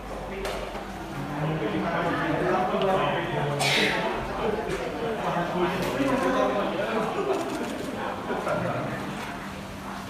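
Several men talk at once, nearby and with animation.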